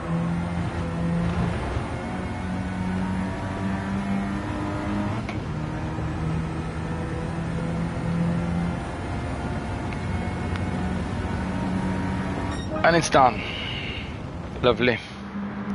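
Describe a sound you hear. A car engine hums steadily and shifts up through the gears as it speeds up.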